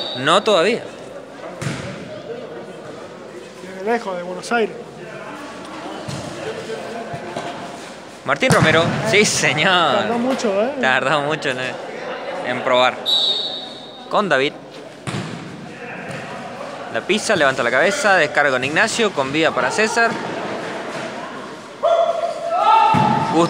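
Young men shout to each other across an echoing indoor court.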